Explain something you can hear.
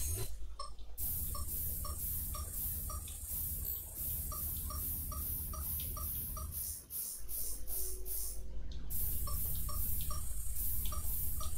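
A low electric buzz hums steadily.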